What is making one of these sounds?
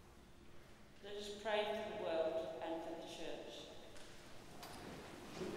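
A man chants a sung line through a microphone in a large echoing hall.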